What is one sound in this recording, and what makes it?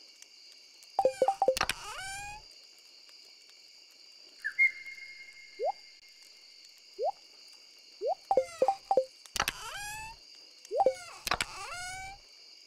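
A game menu opens and closes with quick rising chimes.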